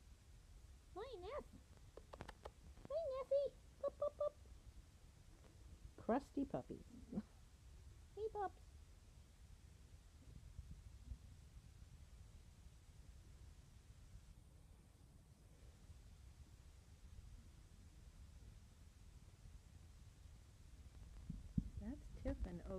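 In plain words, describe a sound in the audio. Puppies yelp and whimper in short, high squeaky bursts.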